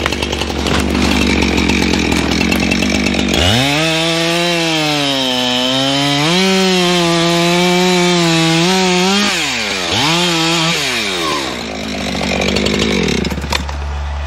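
A chainsaw idles with a low steady putter.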